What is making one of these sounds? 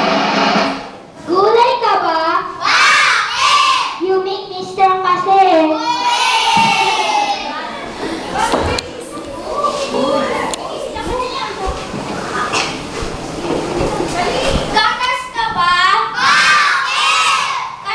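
A young woman talks with animation to a group of children.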